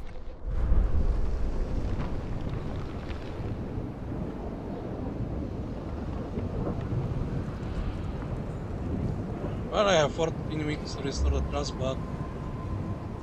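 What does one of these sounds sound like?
Wind howls steadily outdoors.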